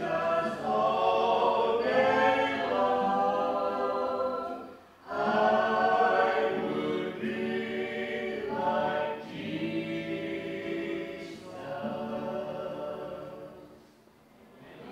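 A guitar strums along with the singing.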